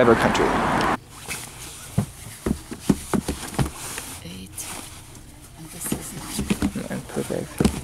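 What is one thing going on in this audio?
A large sheet of fabric rustles and flaps.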